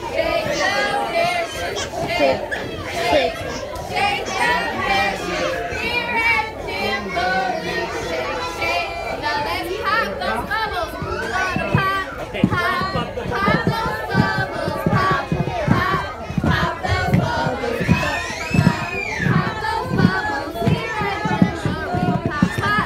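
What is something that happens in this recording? Many young children chatter and shout close by.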